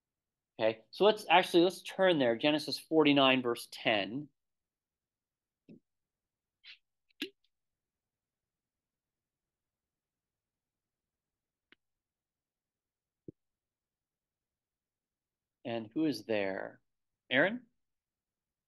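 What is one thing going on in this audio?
A man speaks calmly through a microphone in an online call, pausing between phrases.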